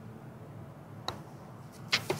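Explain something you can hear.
A putter taps a golf ball with a light click.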